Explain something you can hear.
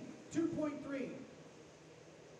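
A young woman calls out briefly in a large echoing hall.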